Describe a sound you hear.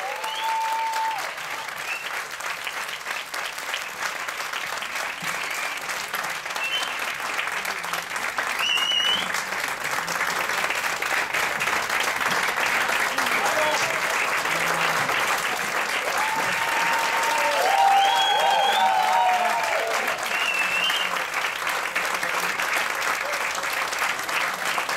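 An audience cheers.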